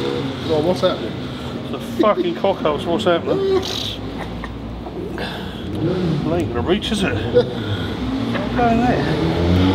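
A man fastens a seat belt with clicks.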